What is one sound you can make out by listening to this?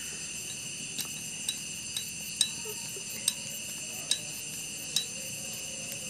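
A metal tool clicks and taps against engine parts.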